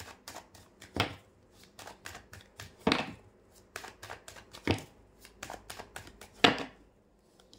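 Cards snap together sharply at the end of each shuffle.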